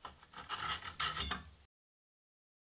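A file scrapes against metal.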